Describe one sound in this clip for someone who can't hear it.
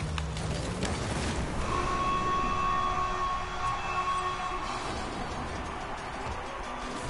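A crowd cheers loudly after a goal.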